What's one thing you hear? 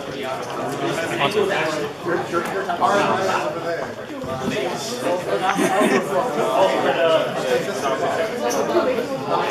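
Young people talk over one another close by.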